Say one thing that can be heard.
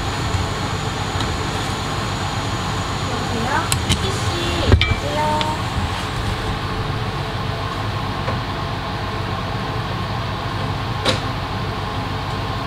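A fan hums and whooshes steadily.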